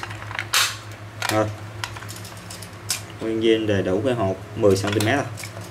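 A tape measure rattles as it is pulled out.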